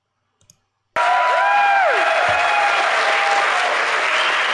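Someone in a crowd whistles shrilly.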